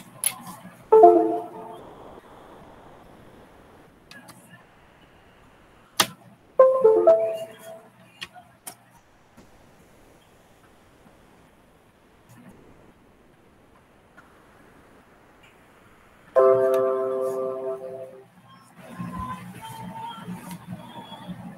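A young woman speaks over an online call.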